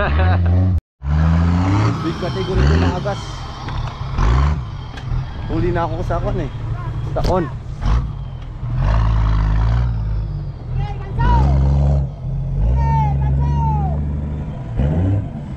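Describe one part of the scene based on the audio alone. An off-road truck's engine revs hard as it climbs over dirt.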